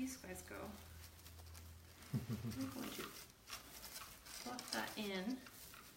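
Plastic mesh rustles and crinkles under a woman's hands.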